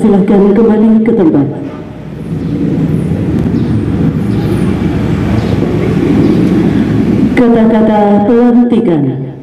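A man speaks slowly and formally into a microphone, heard through loudspeakers.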